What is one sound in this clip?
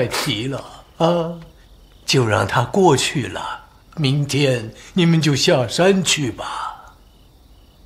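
An elderly man speaks calmly and warmly, close by.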